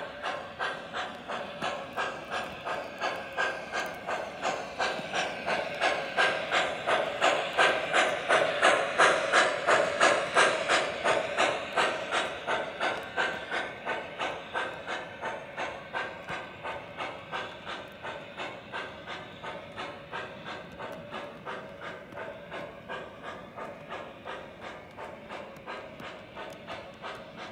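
A model train rumbles steadily along the track, loudest midway and slowly fading.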